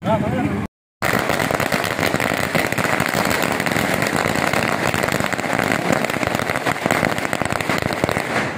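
Firecrackers burst in a rapid, crackling string outdoors.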